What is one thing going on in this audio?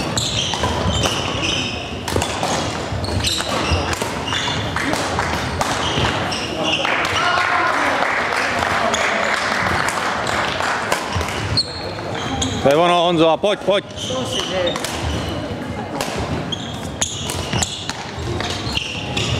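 Sports shoes squeak on the hall floor.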